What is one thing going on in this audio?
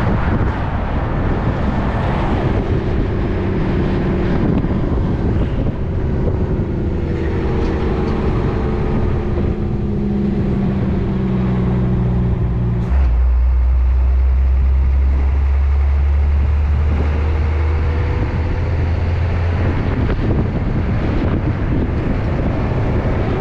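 A vehicle's engine hums steadily while driving, shifting pitch as it slows and speeds up.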